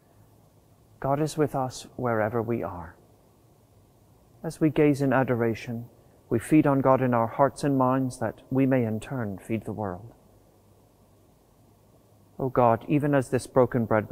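A middle-aged man speaks calmly and slowly into a close microphone.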